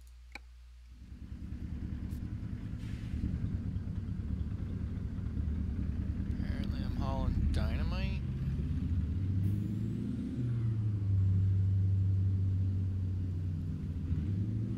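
A truck engine rumbles steadily as the truck drives along.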